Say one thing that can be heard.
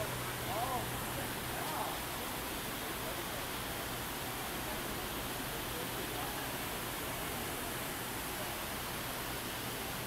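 A crowd murmurs in the distance outdoors.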